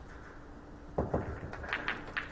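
A cue strikes a ball hard.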